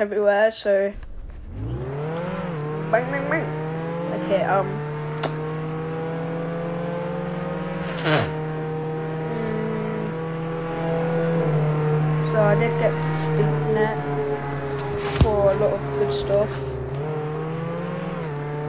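A video game car engine revs up and holds a steady drone as the car speeds along.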